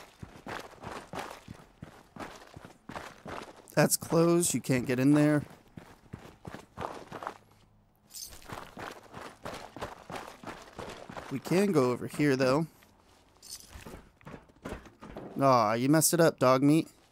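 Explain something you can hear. Footsteps crunch over gravel at a steady pace.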